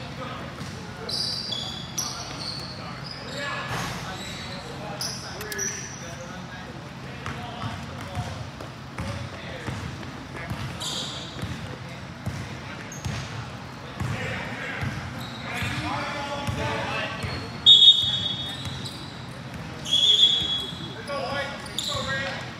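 Young men chat and call out in a large echoing gym.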